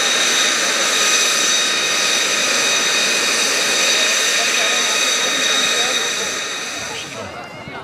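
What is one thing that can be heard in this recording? A jet engine whines loudly and steadily close by, then fades.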